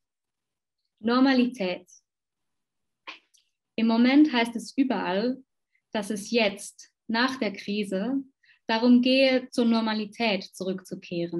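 A young woman speaks calmly and close through a microphone, as if reading out.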